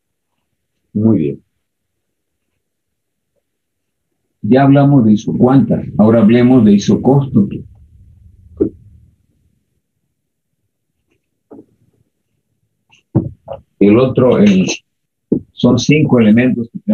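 An elderly man speaks calmly, lecturing.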